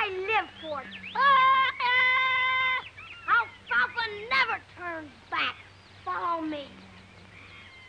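A young boy shouts excitedly nearby.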